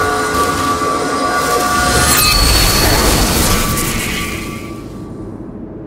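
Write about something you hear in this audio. A magical energy effect crackles and hums, then fades away.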